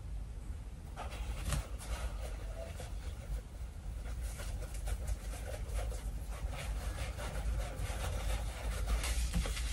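A fabric poster rustles as it is rolled up.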